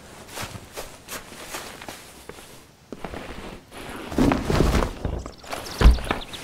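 Footsteps crunch slowly over rough ground.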